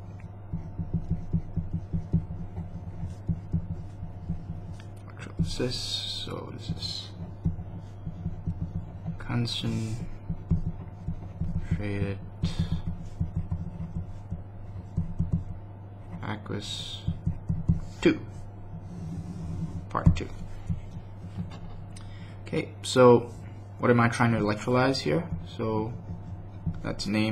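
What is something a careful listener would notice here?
A pen scratches across paper as it writes.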